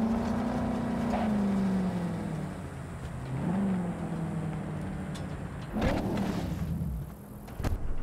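A car engine hums and revs as the car drives over gravel.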